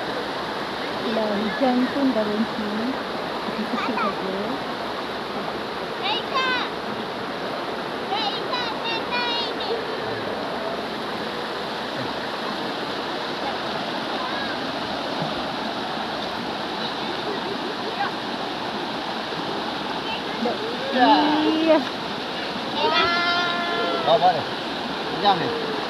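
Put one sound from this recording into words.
A young girl talks and laughs close by.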